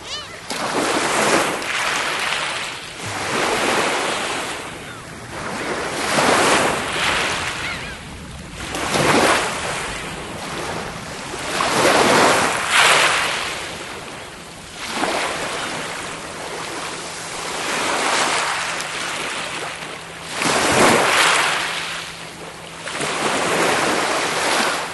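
Small waves wash onto the shore and draw back in a steady rhythm.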